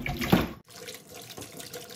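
A hand swishes potato pieces in a bowl of water.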